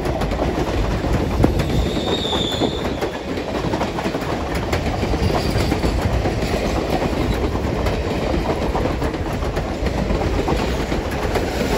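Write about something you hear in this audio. Train carriages rumble and clatter past close by.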